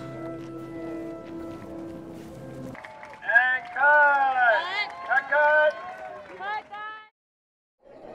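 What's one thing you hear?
Music plays loudly over speakers.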